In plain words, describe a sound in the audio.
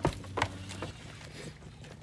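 A young goat suckles noisily.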